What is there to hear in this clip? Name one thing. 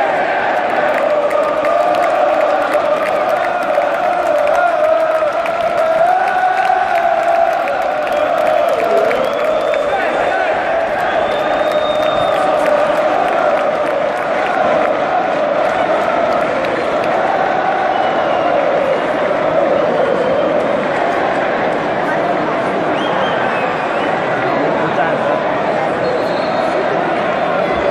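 A large stadium crowd chants and sings loudly.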